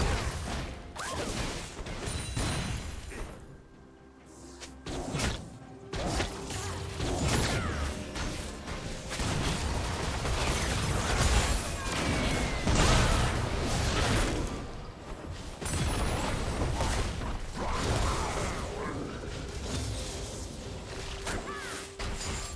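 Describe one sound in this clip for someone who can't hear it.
Video game combat effects clash, whoosh and crackle.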